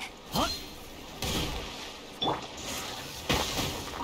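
A loud magical blast bursts and crackles.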